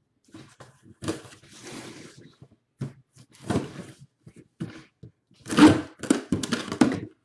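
A knife slices through cardboard tape.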